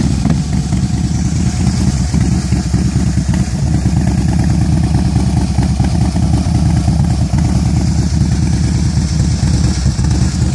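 A motorcycle engine idles with a deep, loping rumble close by.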